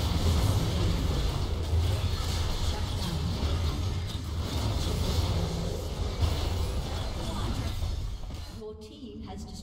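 Loud video game battle effects crash and boom.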